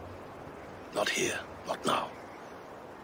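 A man speaks briefly in a low voice.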